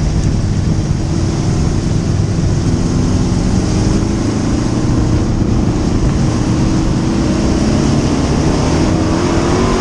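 A race car engine roars loudly up close, revving up and down.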